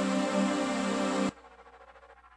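A synthesizer plays a loud, dense chord that cuts off suddenly.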